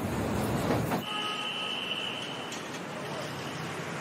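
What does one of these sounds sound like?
Cars drive slowly past on a street.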